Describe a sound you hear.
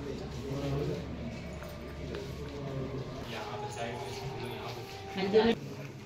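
Footsteps tap on a hard floor in an echoing hall.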